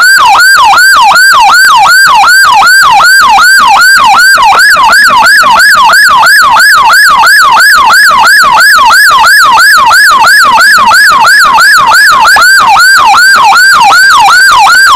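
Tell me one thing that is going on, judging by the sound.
A siren yelps rapidly and steadily close by.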